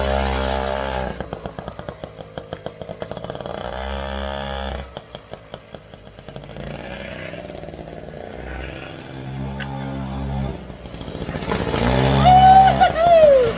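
A small motorbike engine buzzes away into the distance and then grows louder as it returns.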